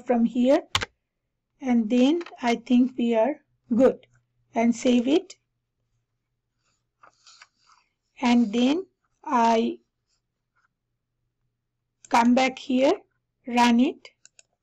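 A woman talks calmly into a headset microphone, in short phrases with pauses.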